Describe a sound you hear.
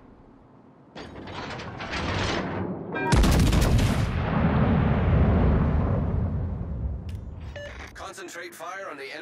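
Heavy naval guns fire with deep booms that rumble away.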